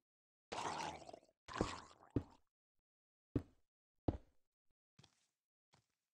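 Blocks are placed with short, soft thuds.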